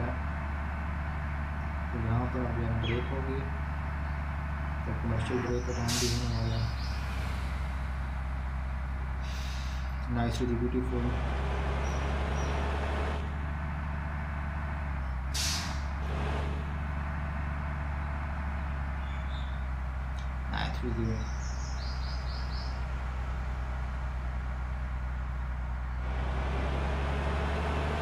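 A bus engine hums steadily as it drives.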